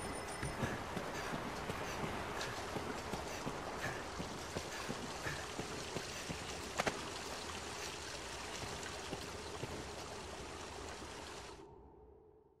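Armoured footsteps clatter steadily on stone.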